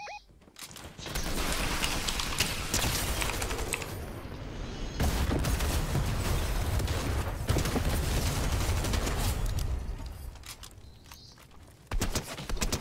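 Gunfire from a rifle rattles in rapid bursts.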